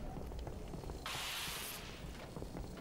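An electric blast crackles and fizzes.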